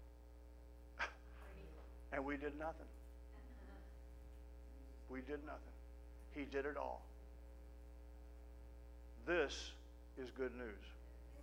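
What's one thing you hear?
A middle-aged man speaks calmly in short phrases through a microphone in a room with a slight echo.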